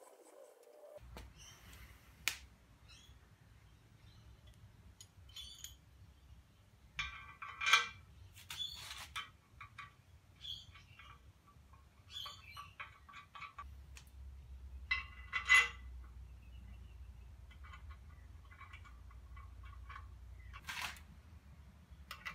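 Metal parts clank and knock as a casting is handled.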